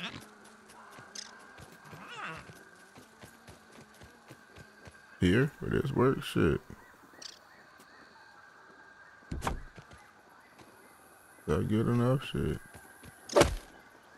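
Light footsteps patter on soft ground.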